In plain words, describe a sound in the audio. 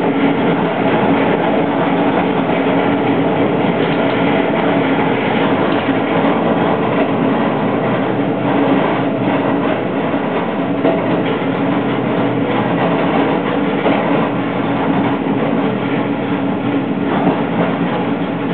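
Wheels clack rhythmically over rail joints.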